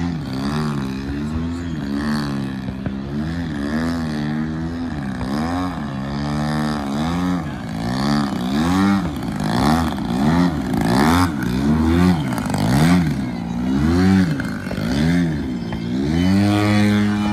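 A model plane's engine whines, rising and falling in pitch as the plane swoops and rolls.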